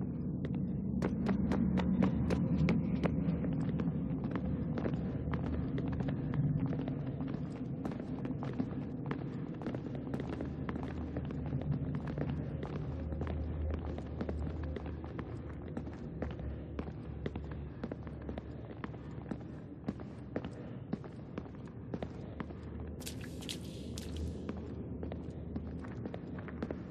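Footsteps patter quickly on hard stone.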